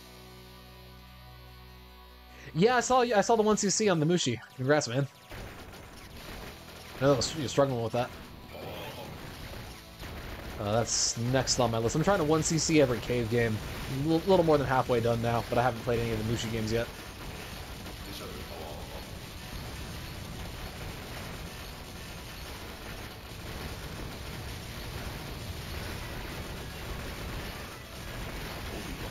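Rapid arcade-style shots fire steadily.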